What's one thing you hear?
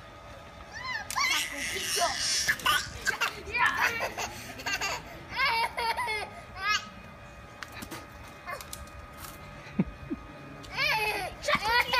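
A toddler girl squeals and babbles excitedly nearby.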